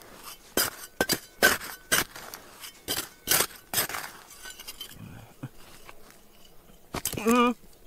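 Loose dirt trickles and patters onto the ground.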